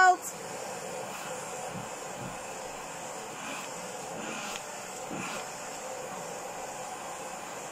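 A vacuum cleaner hums steadily close by.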